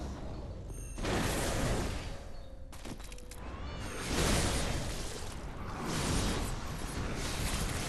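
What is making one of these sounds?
A blade swishes and slashes through the air in loud bursts.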